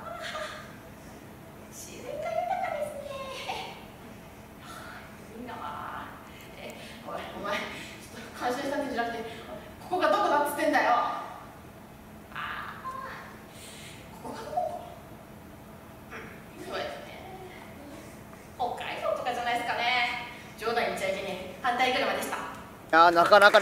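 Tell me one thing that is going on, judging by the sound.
A young woman speaks animatedly through a microphone, her voice sometimes rising into a shout.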